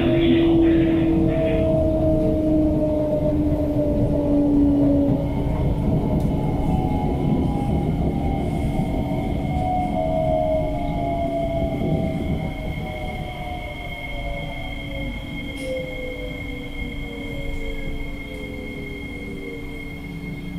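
An electric metro train's motors whine, falling in pitch as the train slows down.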